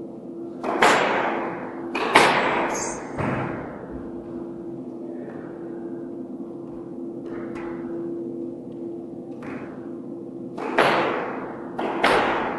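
A squash ball smacks off the walls with a sharp echo in an echoing court.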